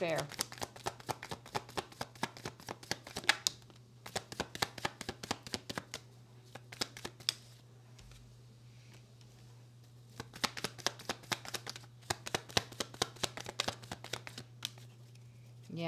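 Cards riffle and flap quickly as they are shuffled.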